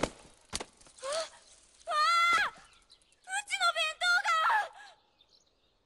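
A young woman speaks in dismay, close by.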